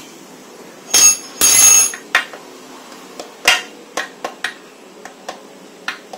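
Metal parts clink and clatter as they are handled.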